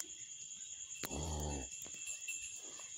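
A cow lows softly close by.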